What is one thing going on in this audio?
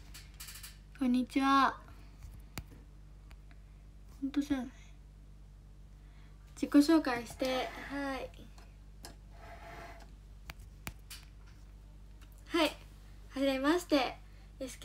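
A young girl talks animatedly and close up, in short bursts with pauses.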